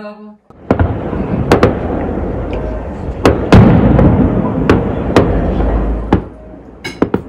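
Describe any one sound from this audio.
Fireworks bang and crackle in the distance with a deep rumble.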